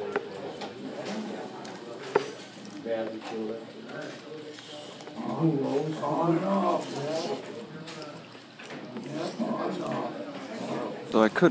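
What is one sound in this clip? Several adults talk and murmur in a large room.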